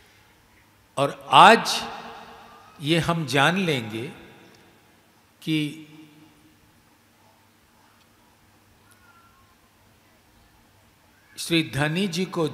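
An elderly man speaks with emphasis into a microphone, in bursts with long pauses, with a slight echo.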